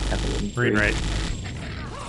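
A gun fires rapid blasts.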